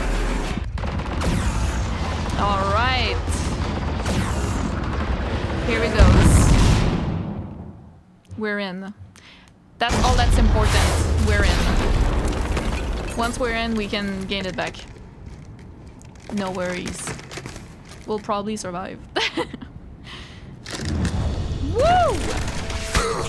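Gunfire and explosions boom loudly.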